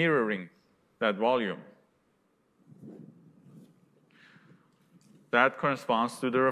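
A man lectures through a microphone in a large room.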